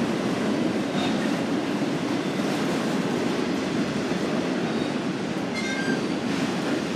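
Steel wheels squeal briefly on the rails.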